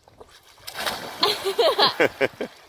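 Water splashes loudly nearby.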